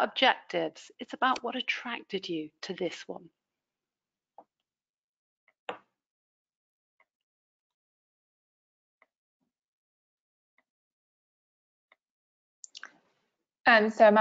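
A woman speaks calmly over an online call, pausing between phrases.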